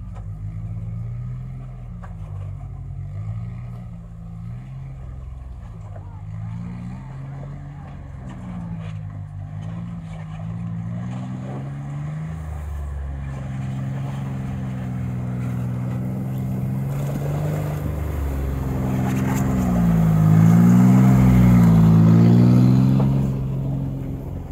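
A tracked vehicle's engine drones and revs, growing louder as it comes closer.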